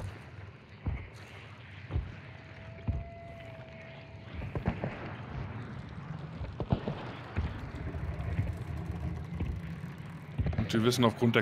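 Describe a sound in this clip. Heavy footsteps thud slowly.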